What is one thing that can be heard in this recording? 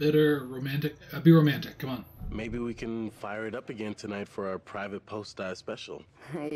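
A young man speaks casually and cheerfully.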